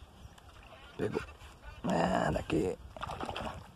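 A hooked fish splashes at the water's surface.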